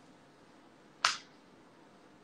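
A young woman snaps her fingers close by.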